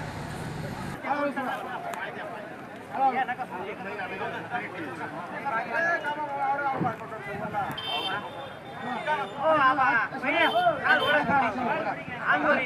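Several men talk loudly and call out close by.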